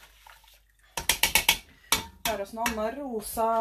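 A whisk clatters quickly against the side of a metal pot.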